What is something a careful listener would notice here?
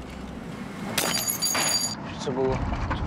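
A glass bottle shatters under a car tyre.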